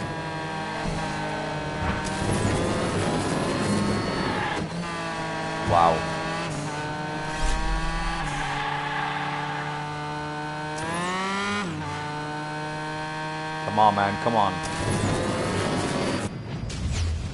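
A racing car engine whines steadily and rises and falls in pitch.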